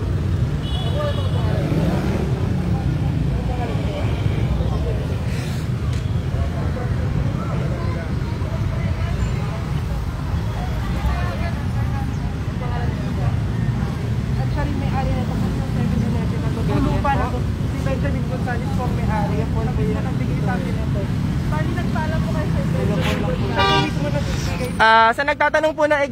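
Several men talk and call out at a distance outdoors.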